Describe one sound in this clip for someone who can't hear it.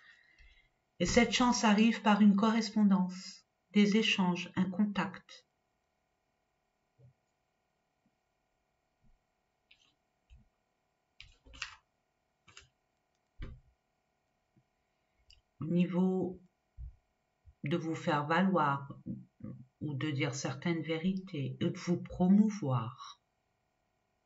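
A woman speaks calmly and close by, explaining.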